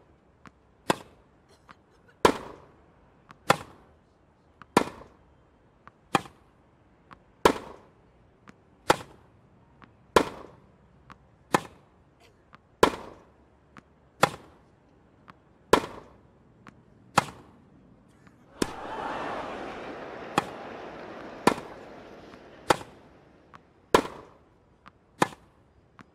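Rackets strike a tennis ball back and forth in a steady rally.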